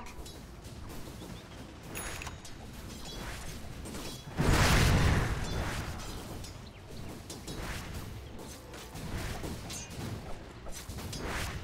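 Fantasy battle sound effects clash and crackle as creatures fight.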